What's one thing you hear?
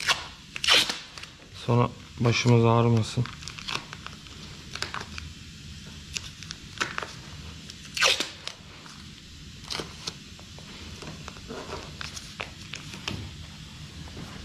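Paper crinkles and rustles under hands.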